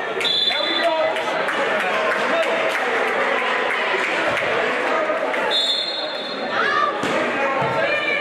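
A crowd of young spectators and players chatter and call out in a large echoing gym.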